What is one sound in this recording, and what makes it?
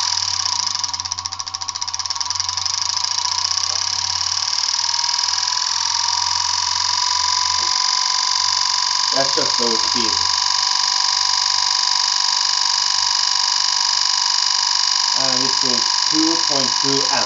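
A vacuum cleaner motor whines loudly at a high, steady pitch.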